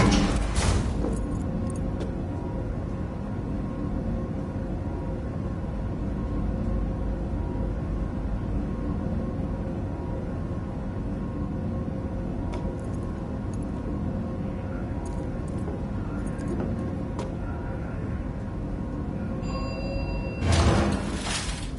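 An elevator hums steadily as it rides.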